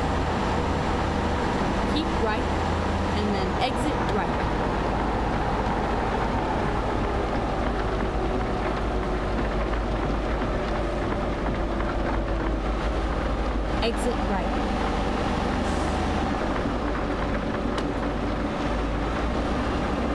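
A truck engine hums steadily as it drives along a highway.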